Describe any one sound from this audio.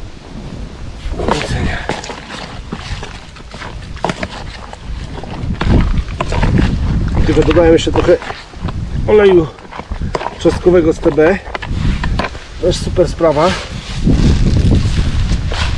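A scoop scrapes and stirs dry pellets in a plastic bucket.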